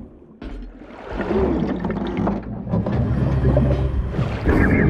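Water gurgles and rushes loudly as a swimmer surfaces.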